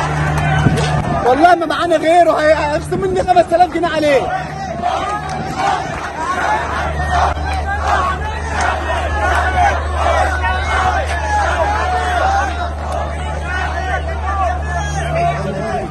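A group of men sing and chant loudly close by.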